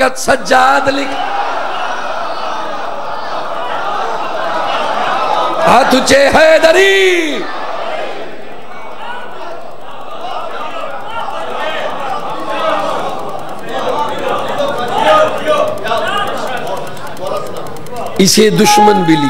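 A crowd of men chants and shouts together.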